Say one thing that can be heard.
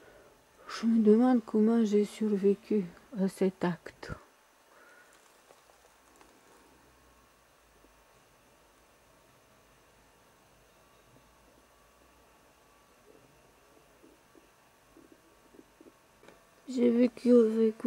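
A woman speaks close to the microphone in a calm, sing-song voice.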